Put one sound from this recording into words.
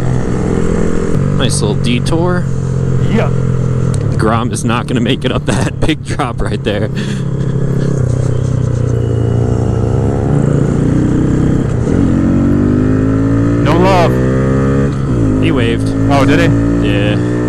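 A dirt bike engine drones up close and revs up and down.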